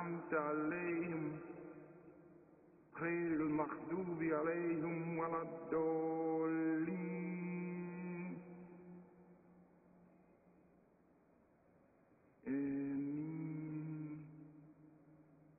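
A man chants a prayer in a slow, melodic voice, echoing through a large hall.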